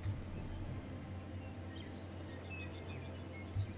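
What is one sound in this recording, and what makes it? A soft interface click sounds as a menu opens.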